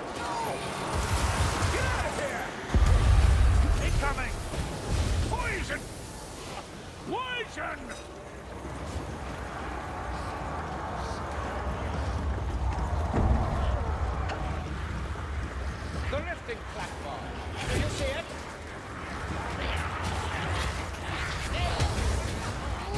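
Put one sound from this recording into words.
A low rumbling roar rises and falls.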